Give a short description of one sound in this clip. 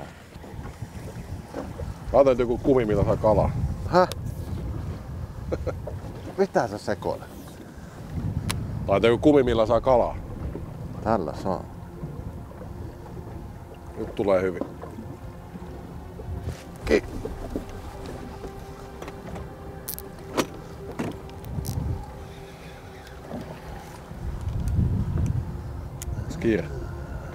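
Waves lap against a boat.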